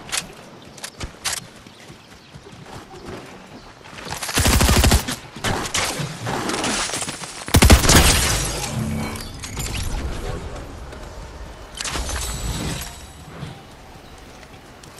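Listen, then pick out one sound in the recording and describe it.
Footsteps patter quickly over grass and dirt.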